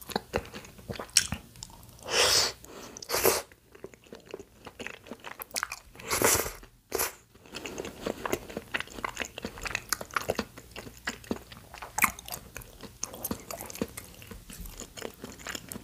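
A young woman chews food with wet, sticky sounds close to the microphone.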